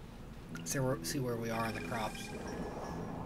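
A man speaks into a close microphone in a relaxed voice.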